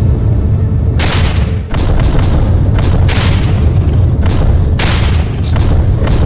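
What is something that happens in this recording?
A laser beam fires with a loud roaring whoosh, again and again.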